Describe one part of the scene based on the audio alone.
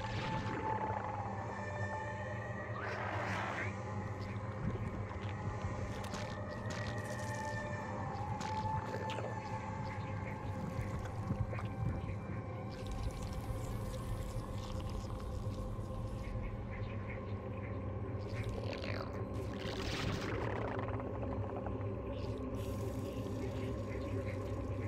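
Short game sound effects click and chime.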